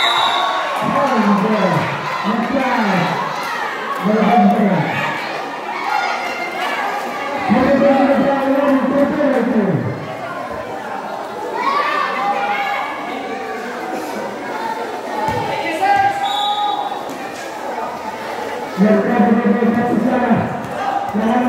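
A crowd of young spectators shouts and cheers outdoors.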